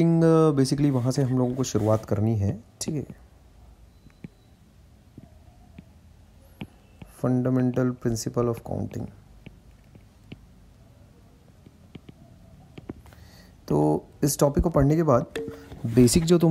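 A stylus taps and scratches softly on a tablet glass.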